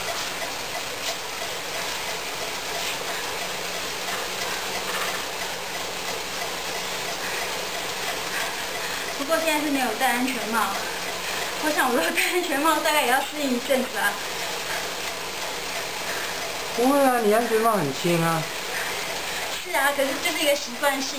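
Bicycle rollers whir steadily.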